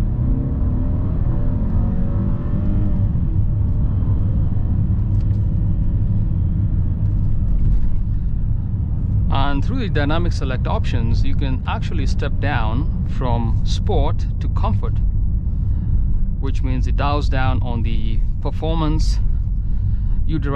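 A car engine hums and tyres rumble steadily on the road.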